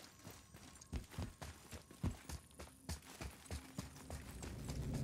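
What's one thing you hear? Heavy footsteps run across stone.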